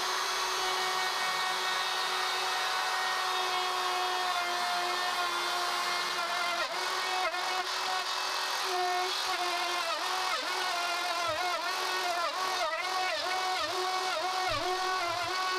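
A router whines steadily, its pitch dipping as it bites into wood.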